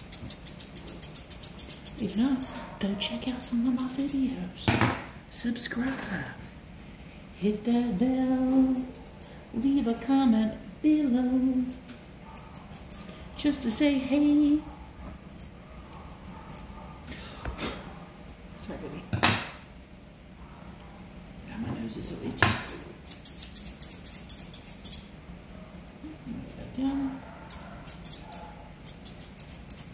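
Scissors snip rapidly through hair close by.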